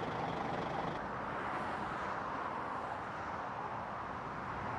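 Traffic roars on a motorway in the distance.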